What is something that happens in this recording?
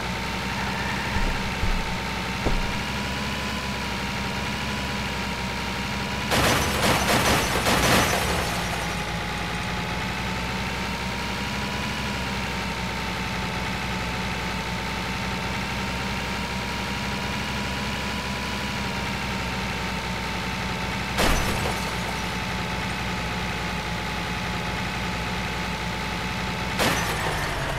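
A truck engine drones steadily at speed.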